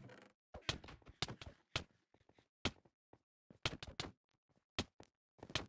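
Stone blocks are chipped with short, sharp knocks.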